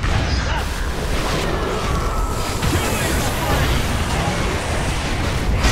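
Game spell effects burst and crackle in quick succession.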